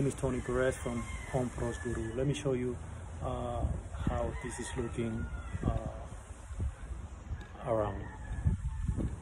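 A middle-aged man talks casually, close up.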